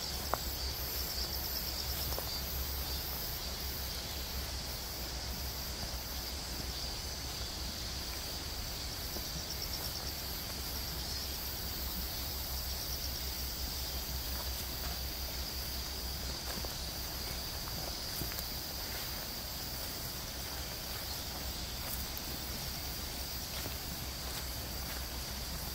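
Footsteps rustle slowly through tall grass.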